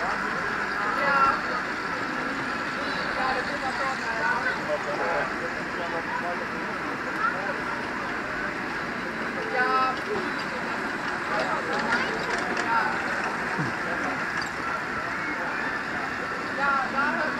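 Children shout and squeal excitedly outdoors.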